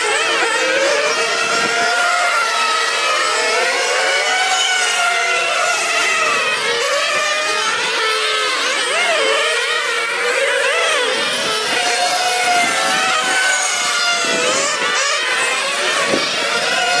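Small model car engines whine loudly, revving up and down as the cars race past.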